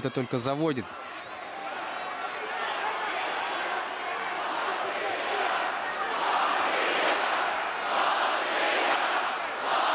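A large crowd cheers and roars in a big hall.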